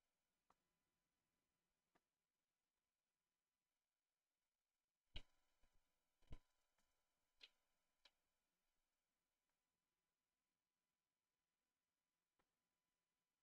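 A game piece clacks down onto a wooden board.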